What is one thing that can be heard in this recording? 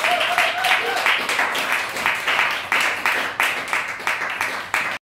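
A stringed instrument is strummed in a quick, steady rhythm.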